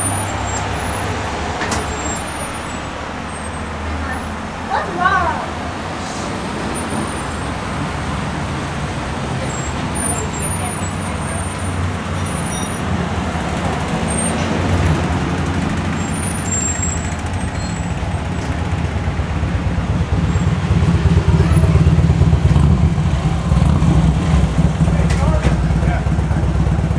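A car engine idles steadily nearby.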